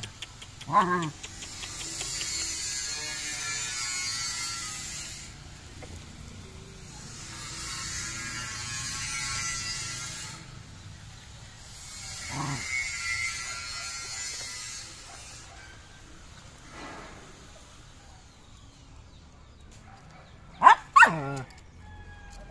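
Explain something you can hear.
Puppies whimper and yelp close by.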